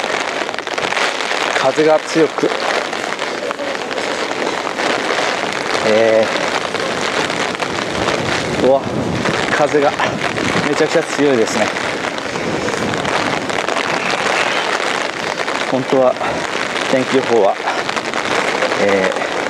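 Wind gusts buffet loudly outdoors.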